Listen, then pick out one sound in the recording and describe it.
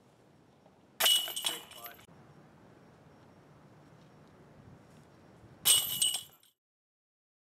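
A golf disc crashes into the metal chains of a disc golf basket, which jingle and rattle.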